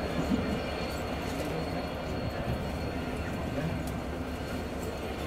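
A diesel locomotive rumbles and drones as it approaches.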